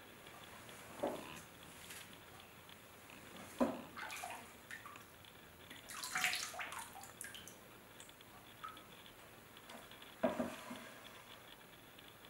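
A ladle knocks against a plastic bucket of liquid glaze.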